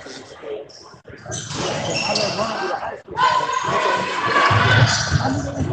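Sneakers squeak on a wooden court in a large echoing gym.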